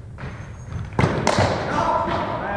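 A cricket bat strikes a ball with a sharp crack in an echoing hall.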